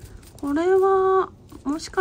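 A stiff brush scrubs soil off plant roots.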